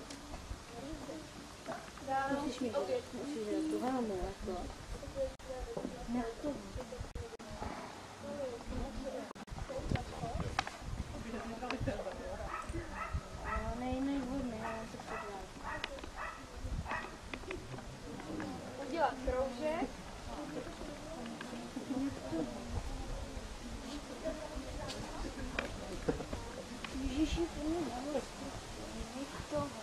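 A horse's hooves thud softly on grass as it walks and trots.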